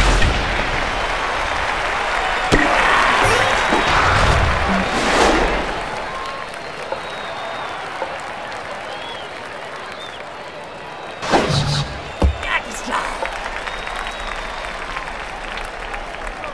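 A crowd cheers and murmurs in a stadium.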